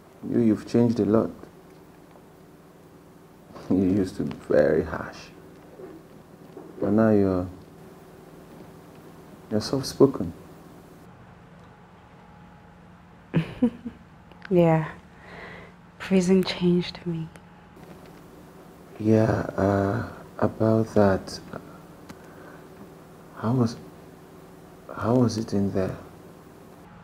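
A man speaks calmly and close by, in short bursts with pauses.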